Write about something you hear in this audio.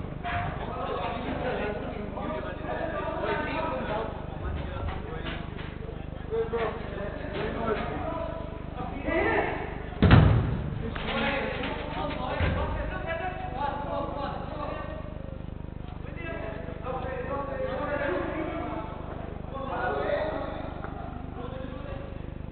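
Men shout and call out to each other across a large echoing hall.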